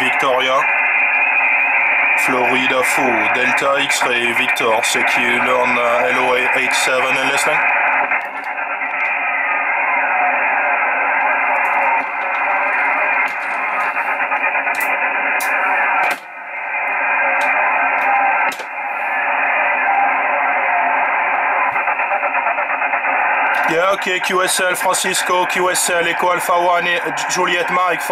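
A radio receiver plays a tinny, muffled transmission through its loudspeaker.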